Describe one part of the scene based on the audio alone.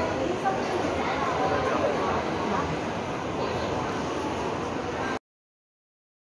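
Many people chatter indistinctly in a large echoing hall.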